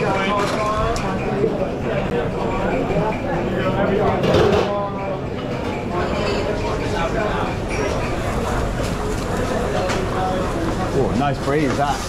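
Several men talk over each other in a busy, noisy room.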